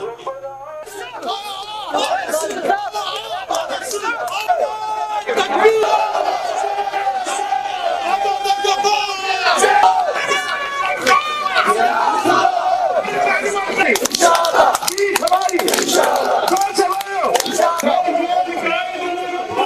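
A large crowd shouts slogans and cheers outdoors.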